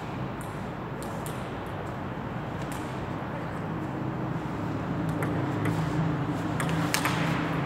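A ping-pong ball clicks sharply off a table and paddles in a quick rally.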